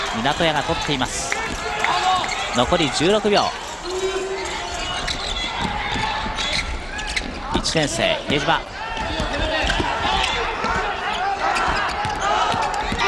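A large crowd cheers and chants in a big echoing arena.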